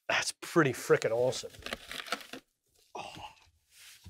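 Cardboard rustles as a wooden case is lifted from a box.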